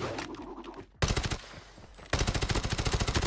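A rapid burst of gunfire rattles.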